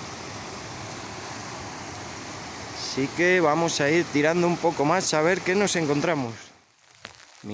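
A mountain stream rushes and splashes over rocks outdoors.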